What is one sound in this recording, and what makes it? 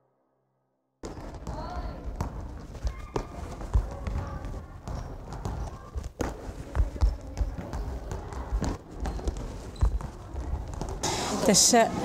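Balls thud on a floor in an echoing hall.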